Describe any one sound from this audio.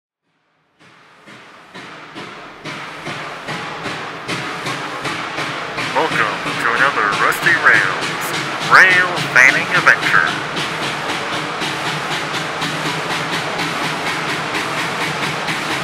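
A steam locomotive chuffs in a quick steady rhythm, growing louder as it approaches.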